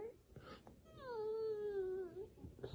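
A little girl whimpers and cries.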